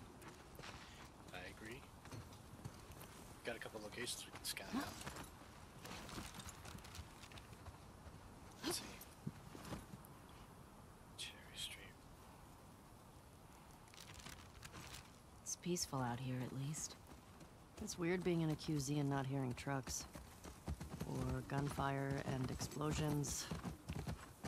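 A horse's hooves thud softly on grass as it walks.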